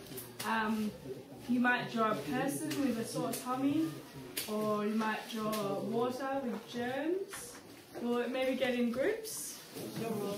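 A young woman speaks calmly and clearly, close by.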